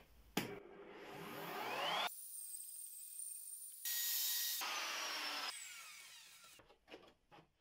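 A power router whines loudly as it cuts into wood.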